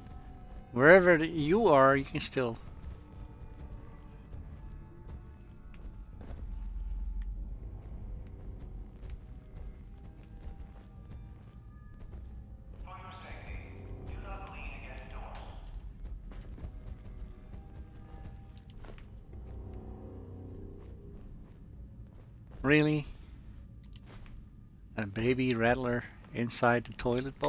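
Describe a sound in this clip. Footsteps crunch over loose debris.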